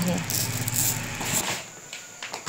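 A plastic sack rustles as beans are scooped.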